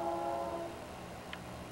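A diesel locomotive sounds its horn briefly.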